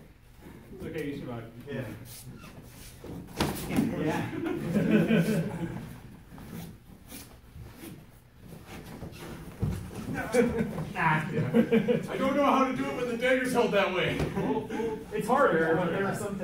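Adults talk nearby.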